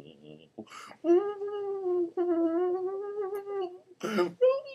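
A young man sings a drawn-out, wavering note.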